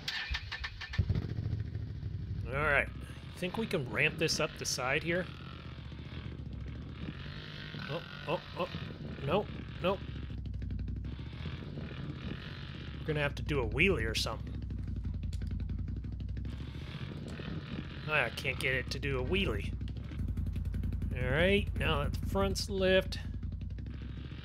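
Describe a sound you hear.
A quad bike engine rumbles low and steady.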